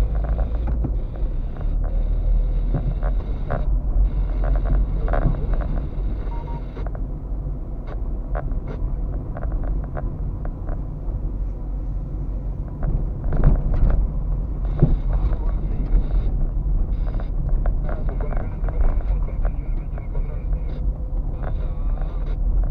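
The car body rattles and knocks over bumps.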